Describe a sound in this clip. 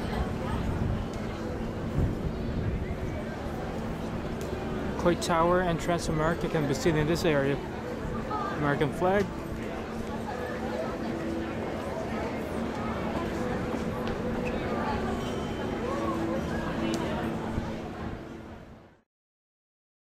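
A crowd murmurs outdoors in the wind.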